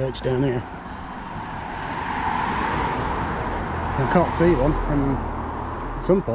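A car drives past close by and fades away.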